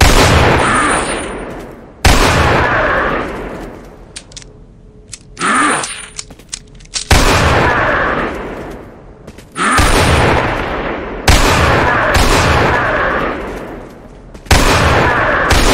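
Heavy gunshots boom one after another, each ringing out with a long echo.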